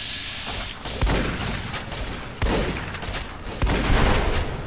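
Gunshots boom loudly in an echoing room.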